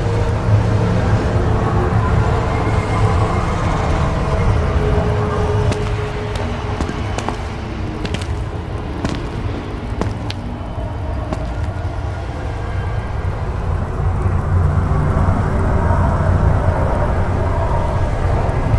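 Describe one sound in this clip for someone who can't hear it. A deep magical hum rumbles steadily.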